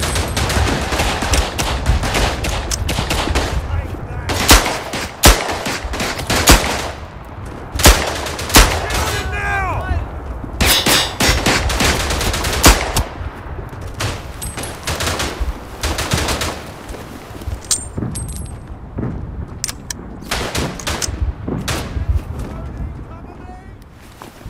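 Distant gunfire and explosions rumble outdoors.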